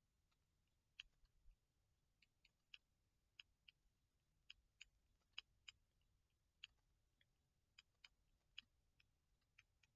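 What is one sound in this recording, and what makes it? Small clicks and taps come from something handled close by.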